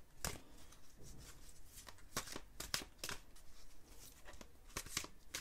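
Playing cards flick and snap as they are shuffled by hand.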